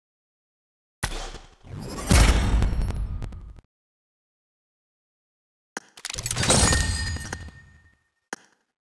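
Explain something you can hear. A bright game reward jingle plays with a whoosh.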